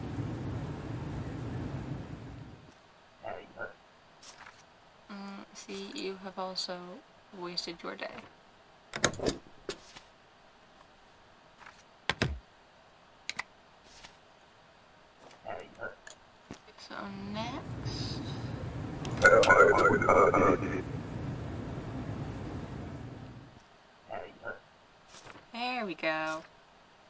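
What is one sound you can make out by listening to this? A young woman talks casually into a microphone, close by.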